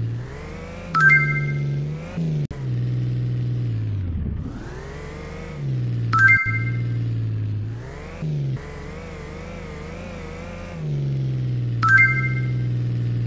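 Coins chime in quick bright pings.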